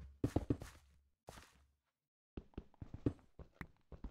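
A stone block is placed with a dull thud.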